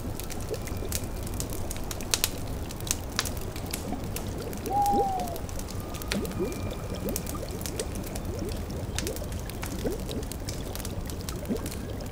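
A fire crackles and pops steadily.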